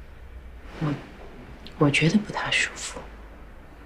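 A young woman speaks softly and hesitantly.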